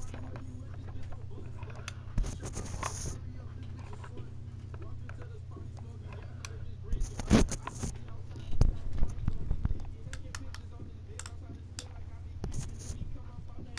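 Guns click and rattle as they are handled.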